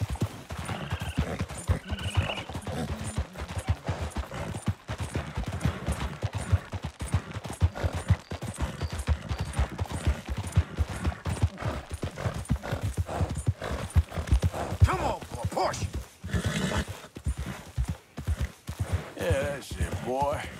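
Horse hooves thud steadily on rocky ground and grass.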